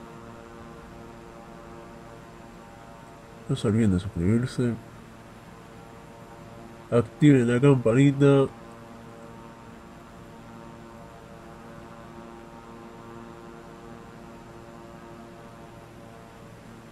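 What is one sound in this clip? A twin-engine turboprop drones steadily in cruise.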